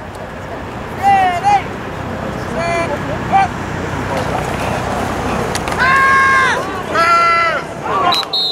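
Young men shout loud calls across an open field.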